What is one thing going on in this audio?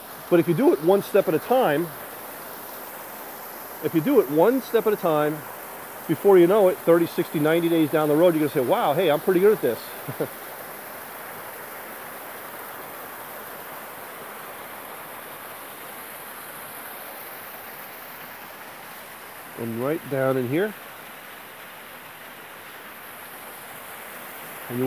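Water trickles and splashes steadily over rocks.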